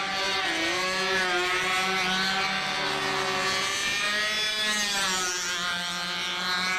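A small model plane engine buzzes overhead, its pitch rising and falling.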